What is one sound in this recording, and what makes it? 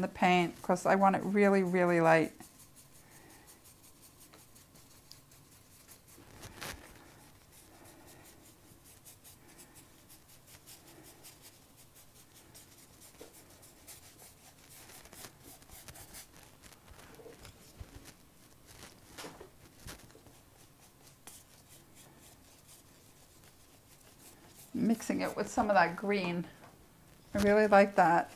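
A paintbrush brushes and scrapes softly across paper.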